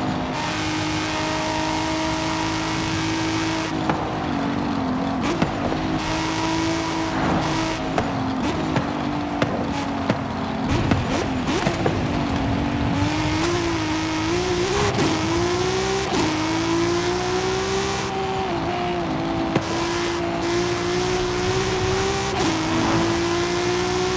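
A car engine roars at high speed, dropping in pitch as it slows and rising again as it accelerates.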